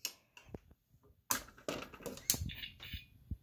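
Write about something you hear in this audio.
A fire alarm pull lever clicks and clacks under a hand.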